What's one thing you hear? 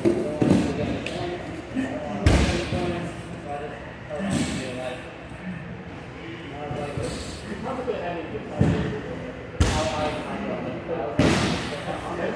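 Bodies thump onto a padded mat.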